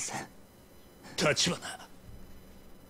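A man speaks in a tense, low voice, close by.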